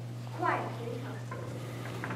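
A young girl speaks clearly on a stage.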